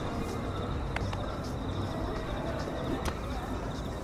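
Footsteps scuff and thud as a figure climbs over a rooftop ledge.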